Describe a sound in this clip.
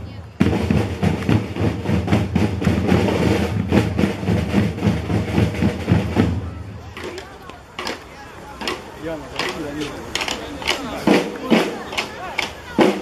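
Drums beat in a steady march rhythm.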